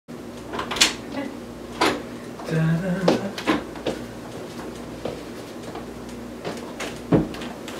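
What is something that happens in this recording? A door opens and shuts.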